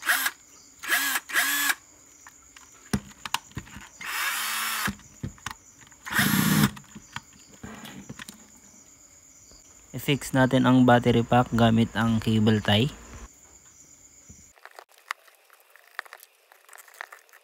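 Plastic parts click and tap as they are handled.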